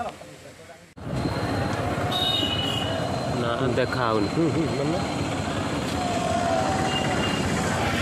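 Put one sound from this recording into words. Motorcycle engines hum as they ride along a road nearby.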